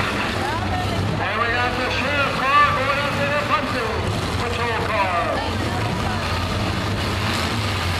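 Cars crash and crunch into each other.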